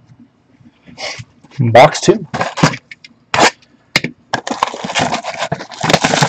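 A cardboard box thumps and scrapes as hands handle it up close.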